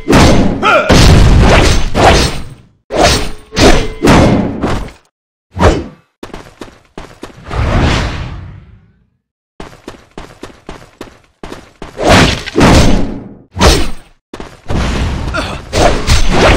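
Magic blasts boom and crackle.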